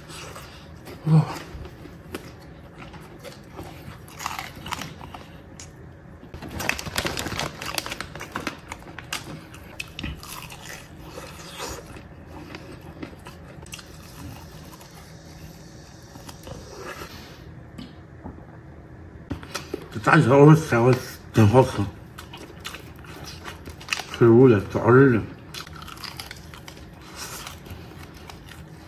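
A man chews and smacks his lips loudly.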